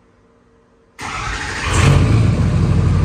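A diesel truck engine rumbles loudly through its exhaust.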